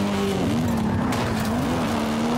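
A car crashes into another car with a thud.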